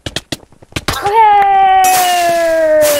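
A bright victory chime rings out and slowly falls.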